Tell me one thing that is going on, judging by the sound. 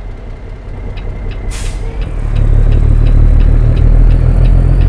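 A turn signal clicks steadily.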